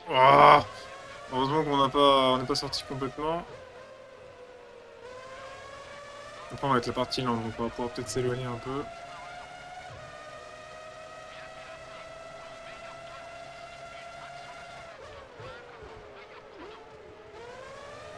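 A racing car engine whines at high revs, rising and falling with gear shifts.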